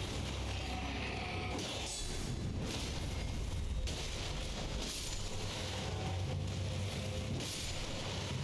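Blades clash and strike repeatedly.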